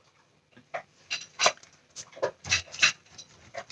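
Cardboard pieces scrape and tap on a table.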